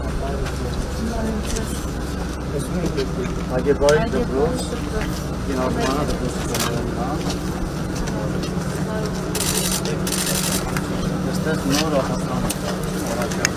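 Men talk nearby outdoors in a group.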